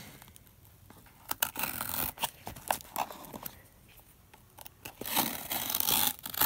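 A pen scratches across paper.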